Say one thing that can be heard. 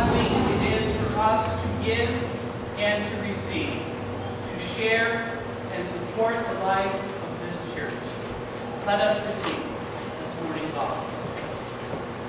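A man speaks through a microphone in a large echoing hall, pausing often.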